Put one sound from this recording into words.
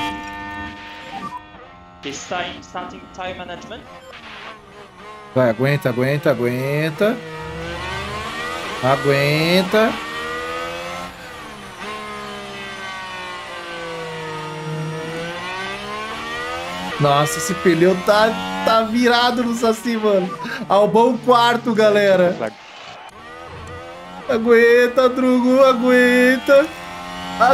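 A racing car engine whines, rising and falling in pitch.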